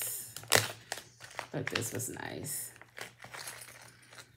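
A plastic bag crinkles in someone's hands.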